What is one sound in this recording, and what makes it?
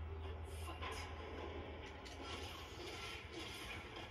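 Punches and kicks thud from a fighting game through a loudspeaker.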